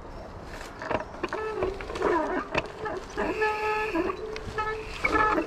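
Bicycle brakes squeal in short bursts.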